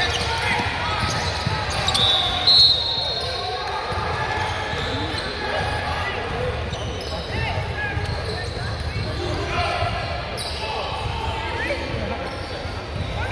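Young players shout and call out across an echoing gym.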